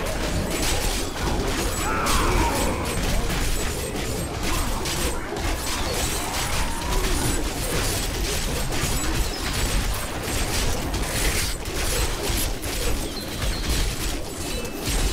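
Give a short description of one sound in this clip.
Magic spells crackle and burst in rapid, constant succession.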